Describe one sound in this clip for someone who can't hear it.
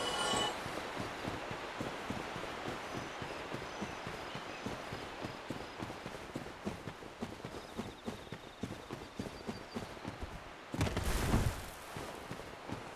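Heavy footsteps tread steadily through grass.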